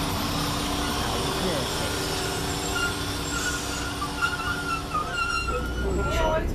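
A train engine hums and whines as the train pulls away.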